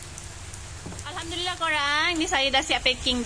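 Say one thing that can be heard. A young child makes a high, sing-song voice nearby.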